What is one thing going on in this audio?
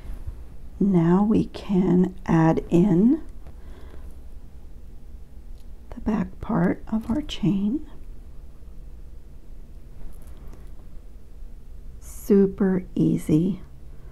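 Small metal chain links clink softly.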